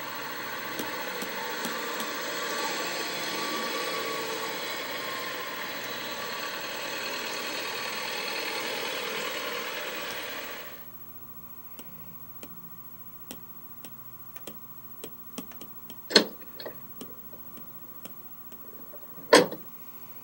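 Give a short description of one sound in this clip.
A stylus taps lightly on a tablet's glass.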